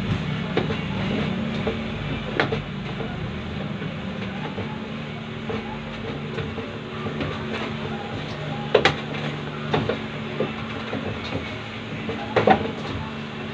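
Hands rub and mix a crumbly pastry dough in a stainless steel bowl.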